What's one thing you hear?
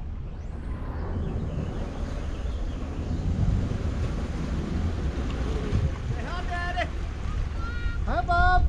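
A boat motor rumbles.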